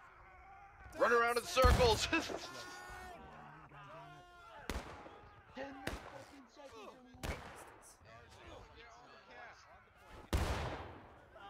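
Rifle shots crack and boom, some close by and some farther off.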